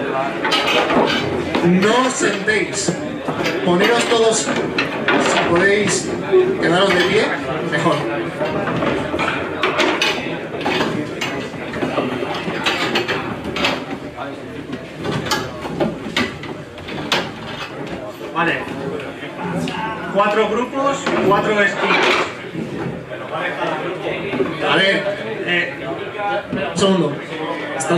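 A crowd of men and women chatters loudly indoors.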